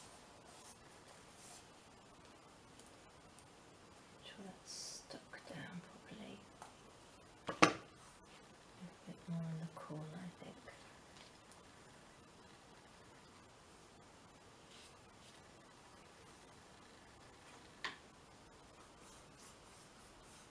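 Hands press and rub paper onto a frame.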